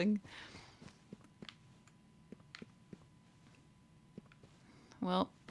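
Footsteps tap softly across a hard floor.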